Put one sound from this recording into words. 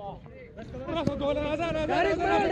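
Young men shout with excitement outdoors.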